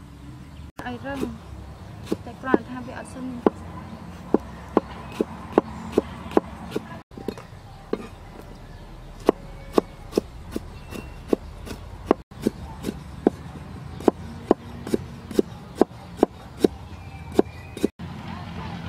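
A cleaver chops rapidly on a wooden board.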